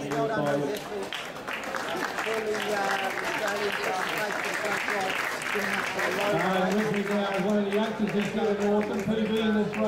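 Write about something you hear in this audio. A crowd of spectators chatters and cheers nearby outdoors.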